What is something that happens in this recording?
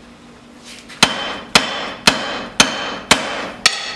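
A hammer strikes hot metal on an anvil with loud, slower clangs.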